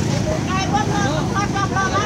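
People chatter and call out nearby in a busy outdoor crowd.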